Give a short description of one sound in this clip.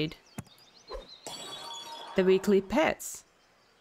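A game chimes with a bright sparkling effect.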